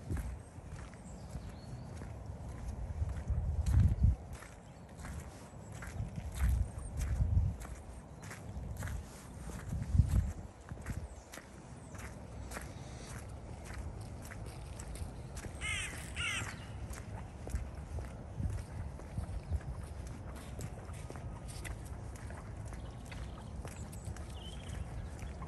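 Footsteps squelch and crunch on wet, muddy ground at a steady walking pace.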